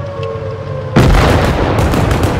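A cannon shot booms with a loud explosion.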